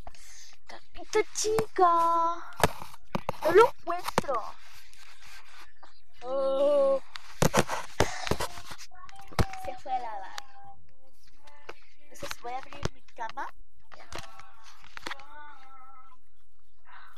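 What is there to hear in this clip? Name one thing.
A young child talks excitedly close by.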